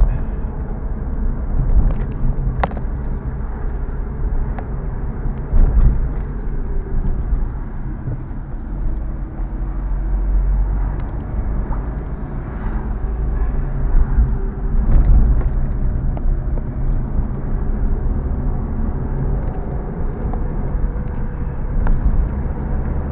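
A car engine hums steadily with low road rumble from inside the cabin.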